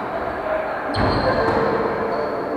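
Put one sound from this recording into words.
A volleyball is struck by hand.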